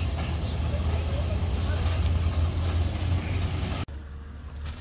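A truck engine rumbles as it passes.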